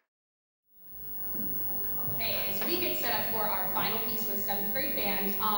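A woman speaks calmly through a microphone in a large hall.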